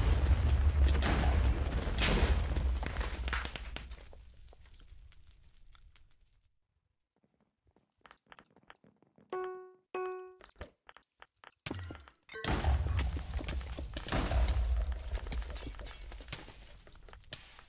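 Loud explosions boom and rumble in quick succession.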